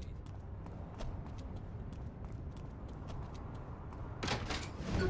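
Footsteps tap quickly on pavement.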